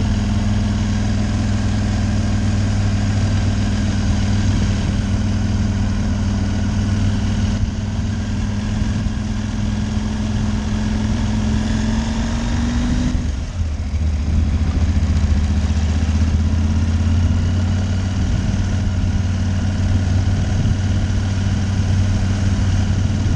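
A motorcycle engine hums steadily close by, rising in pitch and then dropping as it shifts gear.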